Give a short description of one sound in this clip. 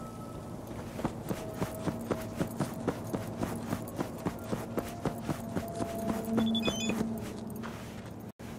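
Footsteps tread steadily on pavement.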